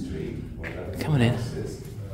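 A young boy speaks up loudly nearby.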